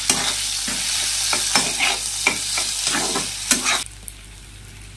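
Vegetables sizzle in hot oil in a wok.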